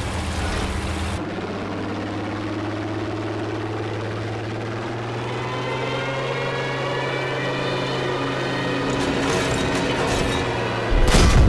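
A propeller plane's engine drones steadily and rises in pitch.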